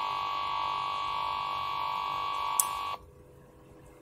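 A computer speaker blares a steady, harsh buzzing tone that cuts off abruptly.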